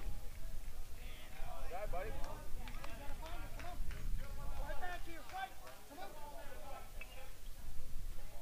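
A man calls out from a distance across the field.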